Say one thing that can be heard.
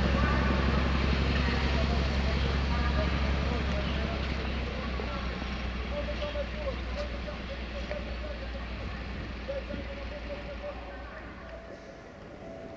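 A diesel train engine rumbles loudly and slowly fades.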